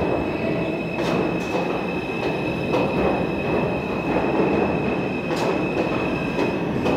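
Train wheels clatter and squeal over rail joints.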